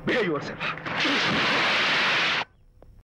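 Water splashes and churns in waves.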